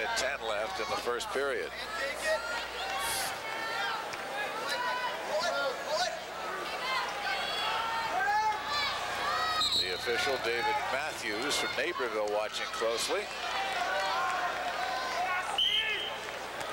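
Wrestlers' shoes squeak and thud on a mat.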